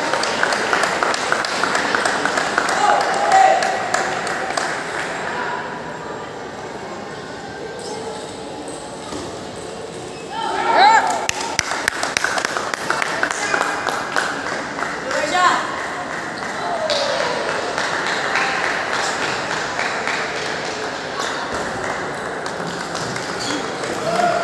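Table tennis balls click against paddles and tables at a quick, steady pace.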